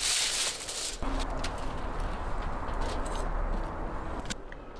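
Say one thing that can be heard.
A knife slices through crispy roast meat.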